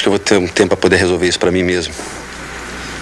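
A man speaks calmly, close up.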